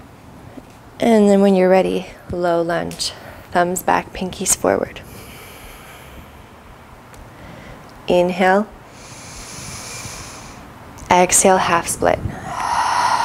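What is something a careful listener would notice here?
A woman speaks calmly through a close microphone.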